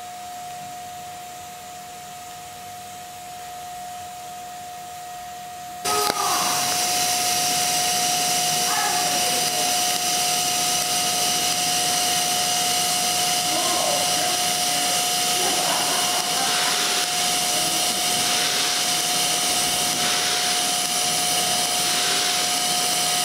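A welding torch hisses and buzzes steadily up close.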